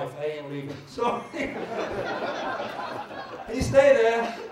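An audience laughs.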